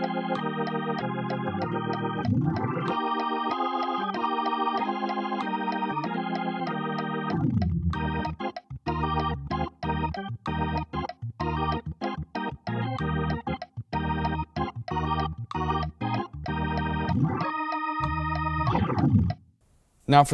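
An electronic keyboard plays chords, first held, then in short rhythmic stabs.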